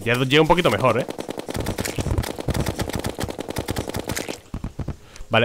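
Rapid shots fire in quick succession.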